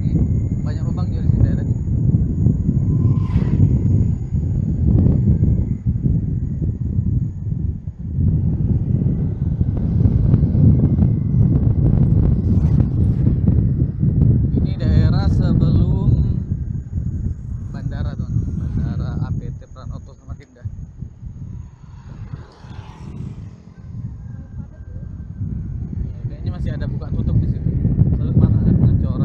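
Wind rumbles loudly past a moving motorcycle.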